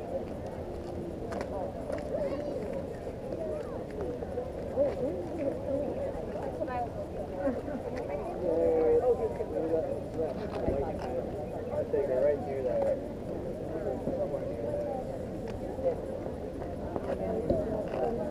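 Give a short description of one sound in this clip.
People talk and call out nearby outdoors.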